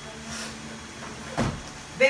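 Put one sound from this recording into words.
A cardboard box thuds down on a cushion.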